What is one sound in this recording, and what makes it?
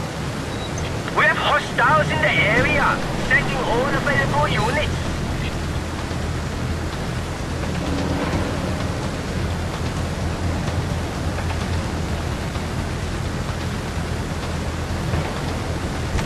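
Wind roars steadily past a flying airplane.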